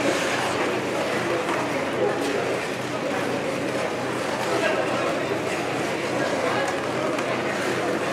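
Many young players talk and call out at once in a large echoing rink.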